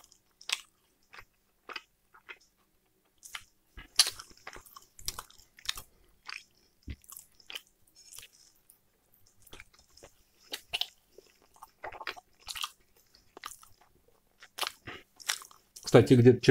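A man chews and smacks his lips close to a microphone.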